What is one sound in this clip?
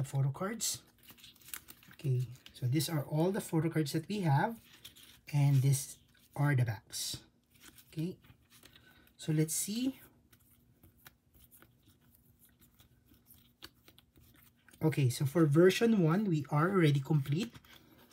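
Plastic card sleeves rustle and click as they are shuffled in hand.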